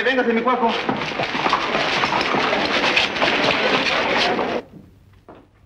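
A crowd chatters and cheers loudly.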